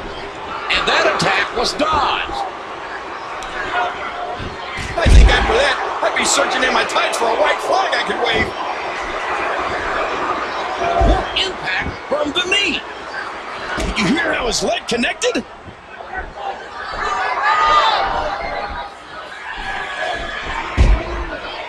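A crowd cheers and roars throughout.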